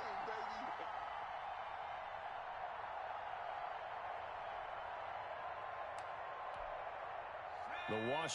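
A large crowd roars steadily in a stadium.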